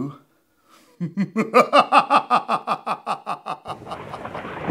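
A man laughs loudly and heartily close by.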